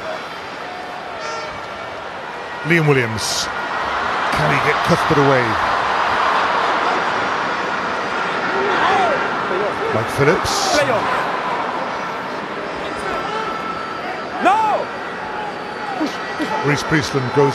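A stadium crowd roars and cheers, swelling loudly and then settling.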